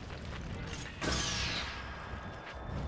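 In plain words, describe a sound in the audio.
A magical whoosh rings out in a game.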